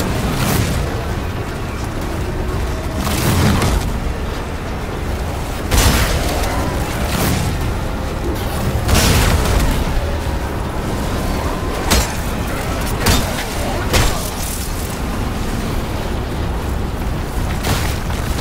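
A creature shrieks and snarls.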